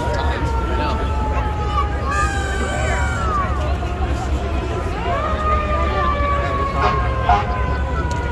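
Sirens wail and whoop from passing emergency vehicles.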